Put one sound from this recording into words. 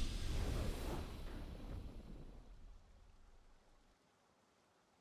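A deep, booming victory fanfare from a video game rings out and fades away.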